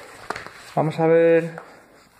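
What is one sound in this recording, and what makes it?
A baby sucks on a bottle.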